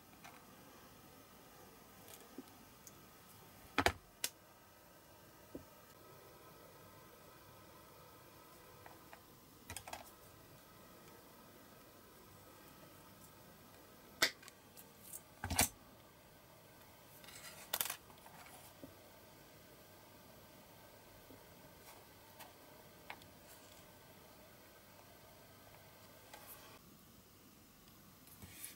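Small metal parts click and tap as fingers handle them.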